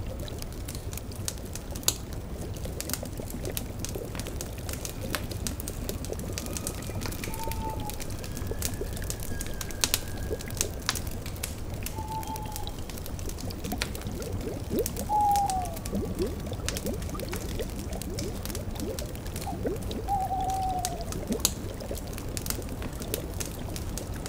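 A cauldron bubbles softly.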